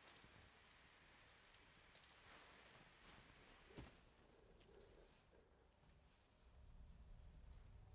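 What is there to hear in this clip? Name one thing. A flare burns with a steady hiss.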